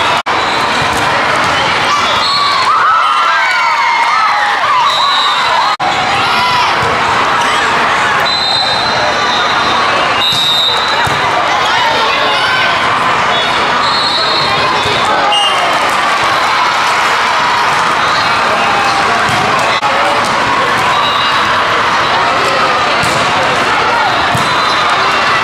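A volleyball thumps against players' arms.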